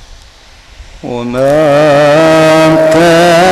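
A man chants in a long, loud, wavering melody through a microphone.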